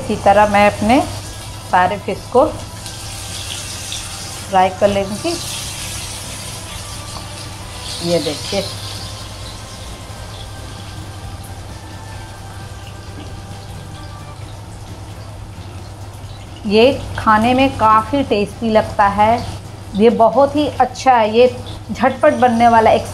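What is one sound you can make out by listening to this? A young woman talks calmly and close by.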